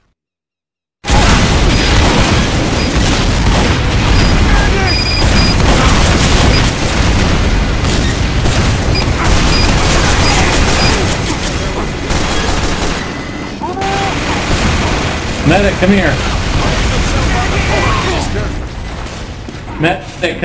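Gunfire and explosions crackle from a game battle.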